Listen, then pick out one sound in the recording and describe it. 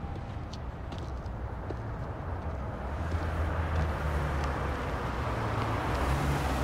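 Footsteps tap on a paved sidewalk.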